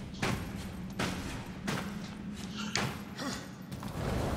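Sharp knocks repeat at a steady pace as someone climbs.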